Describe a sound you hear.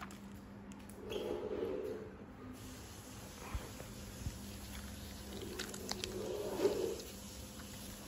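A budgie chirps softly.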